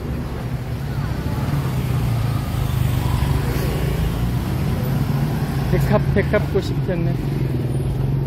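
Motor scooter engines hum and putter past nearby.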